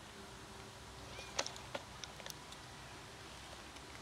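A cat crunches dry food.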